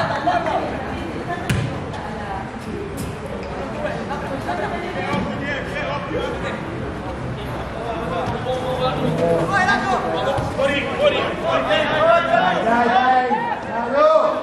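Young men shout and call out across an open outdoor field.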